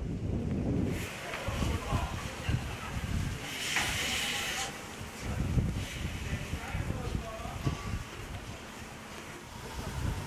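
Steam hisses loudly from a steam locomotive.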